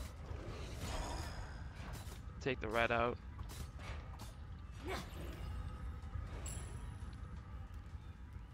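Video game combat effects whoosh and clash.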